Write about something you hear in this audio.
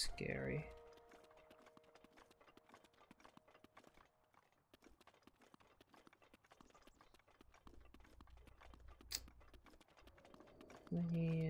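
Footsteps patter quickly on dry ground.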